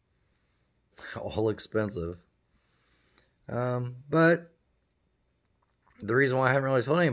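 A middle-aged man talks calmly and close up.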